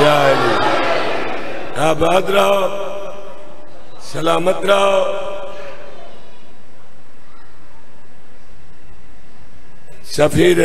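A man recites loudly in a mournful chant, echoing through a loudspeaker.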